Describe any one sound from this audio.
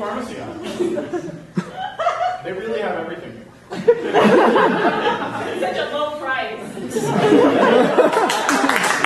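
Young men talk with animation in a large hall.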